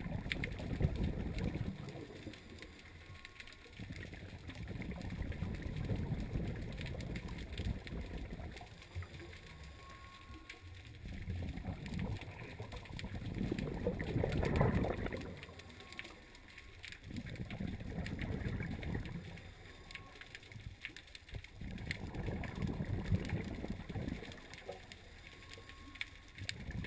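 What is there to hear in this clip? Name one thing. Air bubbles from a diver's breathing gear rush and gurgle underwater in slow, regular bursts.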